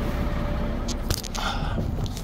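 A truck door thumps shut.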